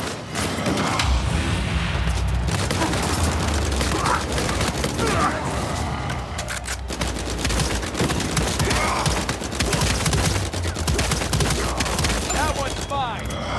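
Heavy explosions boom with a deep rumble.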